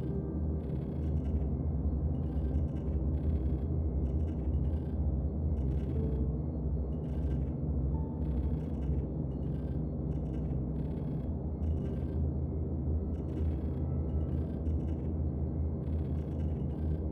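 A spacecraft engine hums with a deep, steady rumble.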